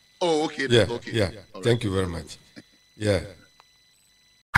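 A man speaks with animation into a microphone, heard over an online call.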